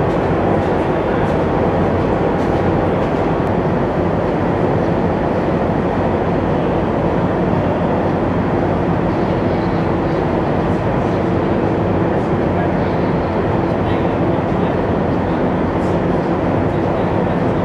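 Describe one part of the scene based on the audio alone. Steel tracks of an amphibious assault vehicle clatter over a steel deck.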